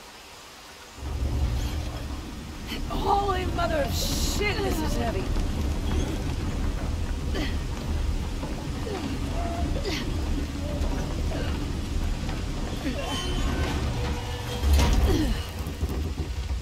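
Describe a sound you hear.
A heavy wooden cart rumbles and grinds along rails.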